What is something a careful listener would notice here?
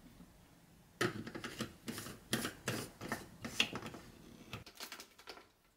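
A plastic lid clicks and knocks onto a jar.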